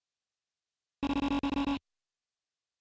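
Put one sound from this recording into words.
Quick electronic blips chatter rapidly in a video game.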